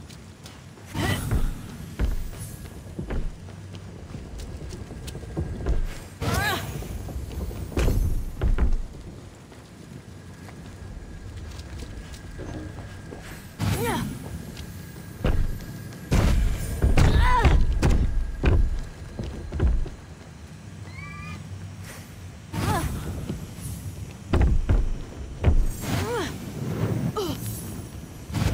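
Fiery blasts whoosh and explode in short bursts, again and again.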